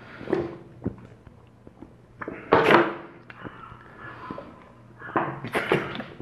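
A young man gulps water from a plastic bottle.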